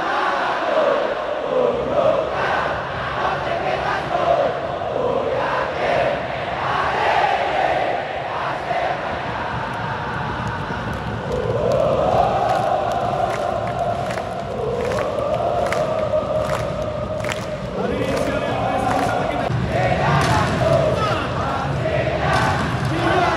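A large stadium crowd chants and sings loudly in an open arena.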